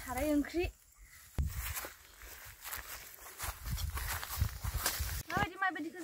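Footsteps crunch on dry grass and leaves.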